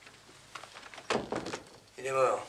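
A door shuts with a thud.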